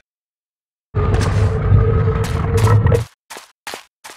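A heavy stone slab grinds and rumbles as it slides.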